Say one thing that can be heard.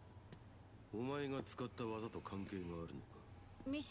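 A young man asks a question calmly.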